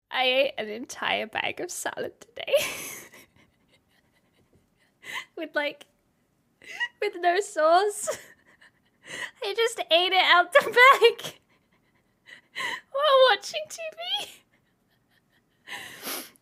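A young woman laughs loudly into a close microphone.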